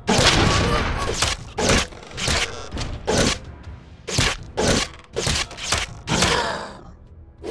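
A gun fires in rapid blasts, echoing between buildings.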